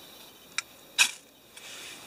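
A lighter clicks and sparks.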